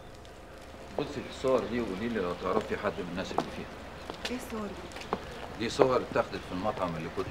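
A man speaks quietly some distance away.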